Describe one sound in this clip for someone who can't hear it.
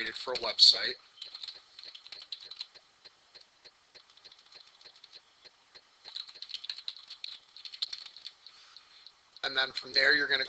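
Keys on a computer keyboard click in quick, light taps.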